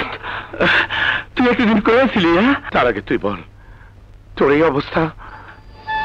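Another man answers in a tense, raised voice.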